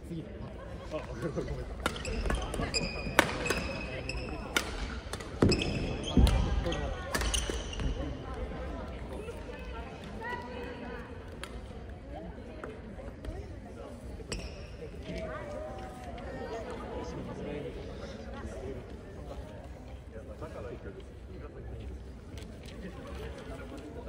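Shuttlecocks are struck with rackets in a large echoing hall.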